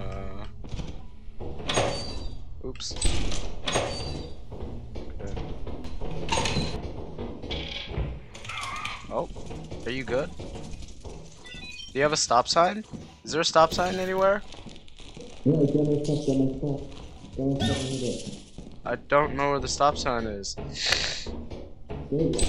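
Footsteps clang on metal grating.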